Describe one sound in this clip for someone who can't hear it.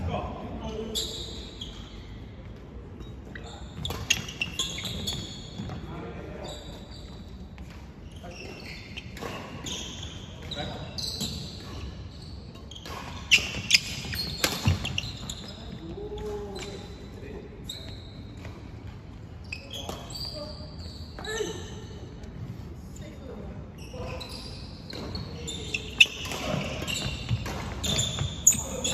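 Shoes squeak and thud on a wooden floor.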